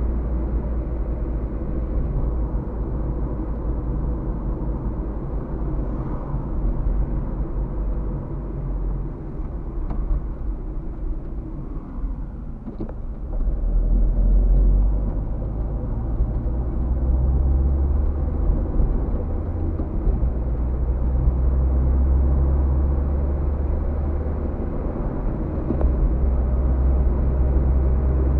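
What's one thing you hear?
A car engine hums steadily from inside the car, with a low road rumble.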